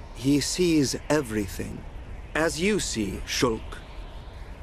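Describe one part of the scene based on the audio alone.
A young man speaks calmly and gravely.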